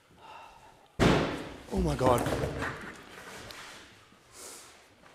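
A man speaks in a large echoing room.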